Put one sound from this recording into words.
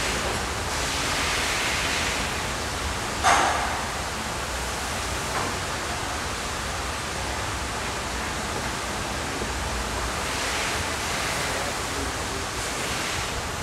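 Oil glugs as it is poured into a container.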